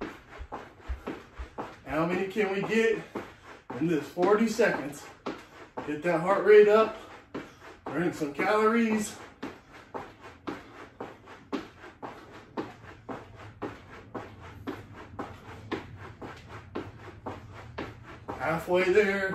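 A jump rope slaps the floor in a quick, steady rhythm.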